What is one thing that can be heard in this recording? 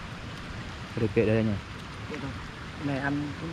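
A young man speaks briefly and casually close by.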